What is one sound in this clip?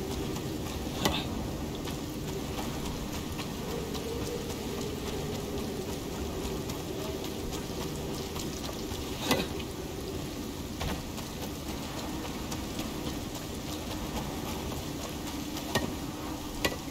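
A pickaxe strikes rock with sharp knocks.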